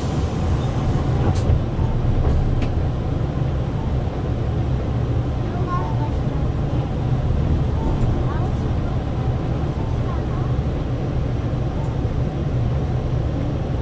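Tyres roll along the road as the bus slowly drives forward.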